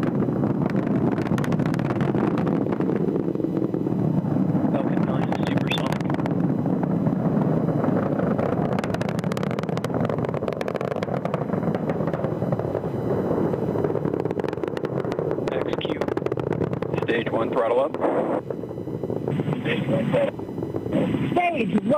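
A rocket engine roars steadily with a deep, rough rumble.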